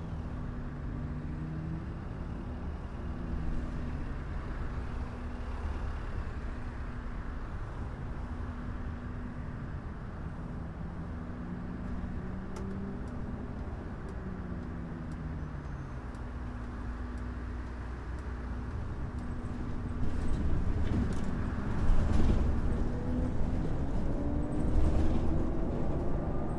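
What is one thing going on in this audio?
A bus engine hums steadily, rising and falling in pitch as the bus speeds up and slows down.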